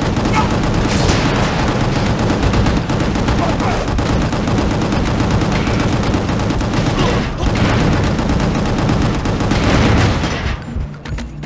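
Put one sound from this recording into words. A gun fires rapid bursts with loud blasts.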